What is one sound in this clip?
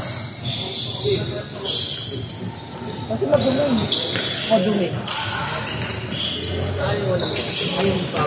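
Young men shout and call out to each other.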